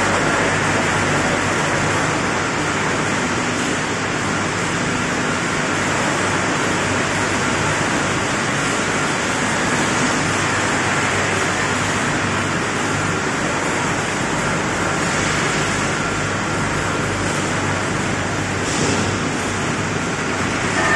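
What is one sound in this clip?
Factory machinery hums and roars steadily.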